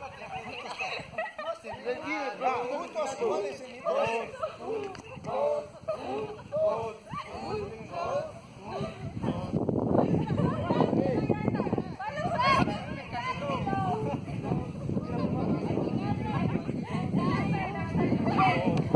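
A crowd of children and teenagers chatter and call out in the open air.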